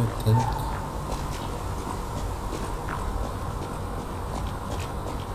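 Footsteps thud on cobblestones.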